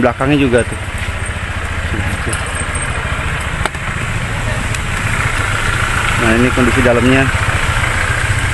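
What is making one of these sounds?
A motorcycle engine rumbles steadily.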